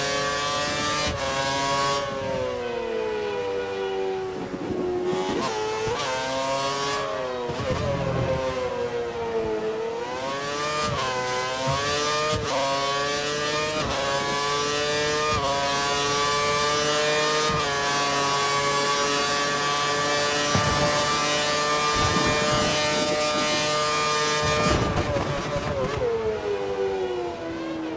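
A racing car engine screams at high revs, dropping in pitch as it brakes and rising again as it speeds up through the gears.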